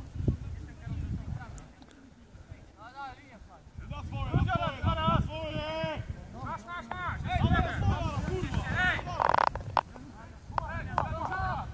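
Football players shout to each other across an open field in the distance.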